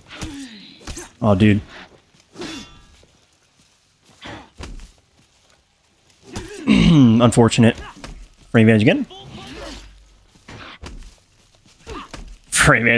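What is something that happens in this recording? Metal weapons clash and clang in short, sharp blows.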